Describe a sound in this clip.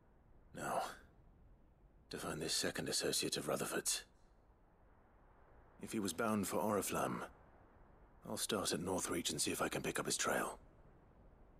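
A young man speaks calmly and close up.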